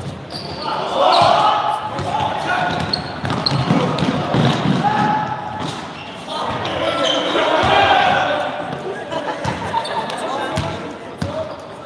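Young men shout and call out across an echoing gym.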